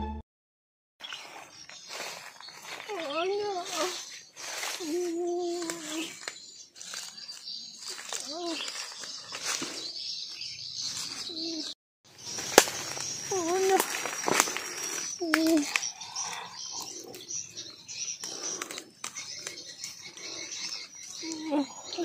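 Dry leaves and twigs rustle and crack underfoot.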